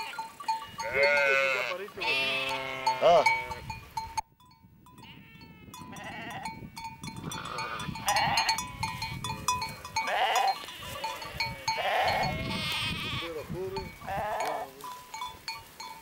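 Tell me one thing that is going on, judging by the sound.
Sheep bleat repeatedly nearby, outdoors.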